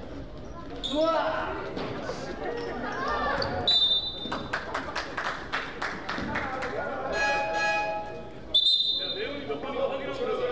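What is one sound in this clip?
Sneakers squeak sharply in an echoing gym.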